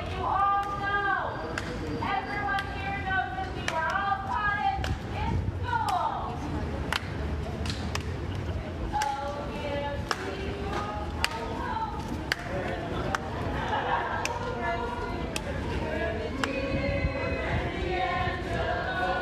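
A group of men and women sing together outdoors, a short way off.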